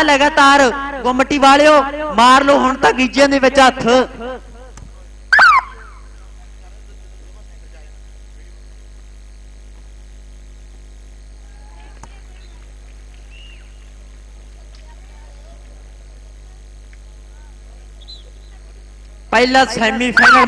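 A man announces loudly through a loudspeaker, with a sing-song voice.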